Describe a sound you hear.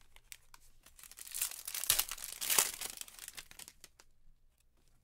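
A plastic card sleeve crinkles and rustles.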